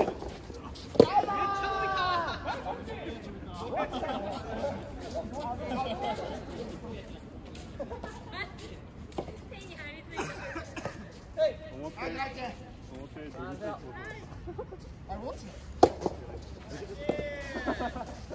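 Men call out and talk to each other from some distance away.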